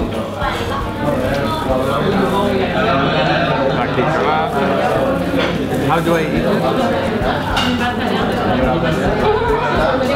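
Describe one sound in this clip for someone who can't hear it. A middle-aged man talks close by.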